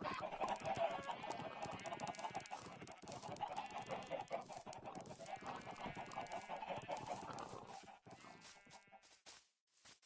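Chickens cluck.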